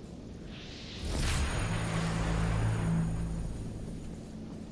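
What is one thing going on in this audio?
A heavy sword swings and strikes with a loud rushing burst.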